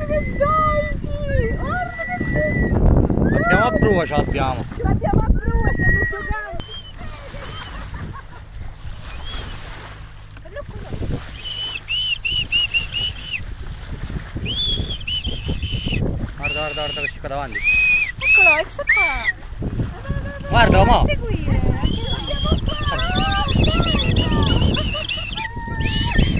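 Water laps against a boat's hull outdoors in light wind.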